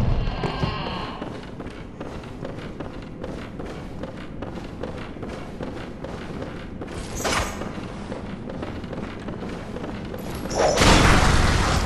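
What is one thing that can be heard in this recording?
Footsteps tap steadily on wooden floors and stairs.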